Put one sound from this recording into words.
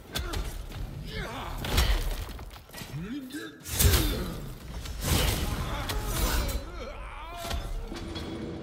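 A creature snarls and growls.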